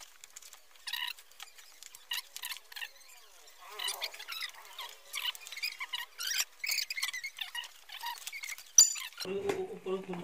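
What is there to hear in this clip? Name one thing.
Cardboard packaging rustles and crinkles as a box is opened.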